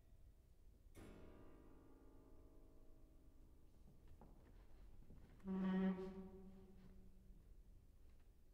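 A piano sounds a few soft, ringing notes.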